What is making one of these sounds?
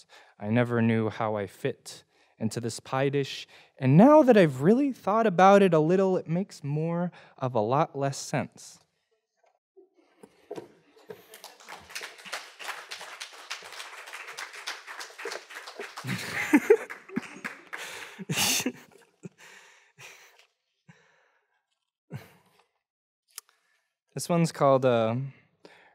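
A young man reads out calmly into a microphone.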